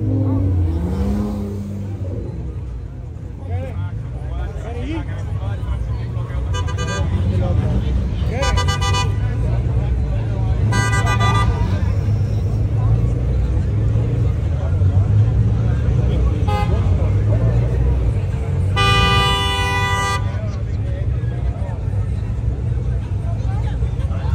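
A crowd of young men and women chatters loudly outdoors.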